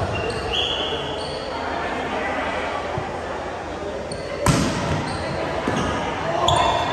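Young players call out to each other in an echoing gym.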